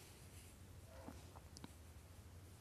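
Small beads click softly against each other.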